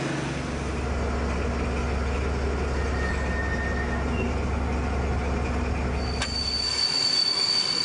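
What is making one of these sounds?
A locomotive engine hums steadily from inside the cab.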